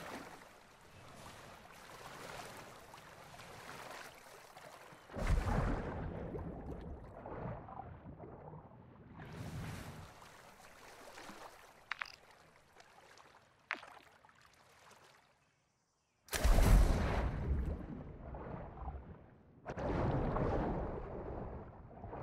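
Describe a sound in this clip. Water splashes and churns as a swimmer moves through it.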